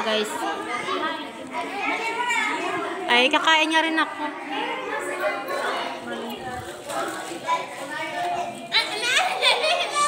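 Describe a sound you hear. Children call out and shout in the background.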